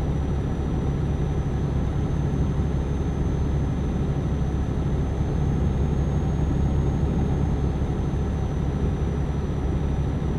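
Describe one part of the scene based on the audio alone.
Tyres roll on a highway with a steady rumble.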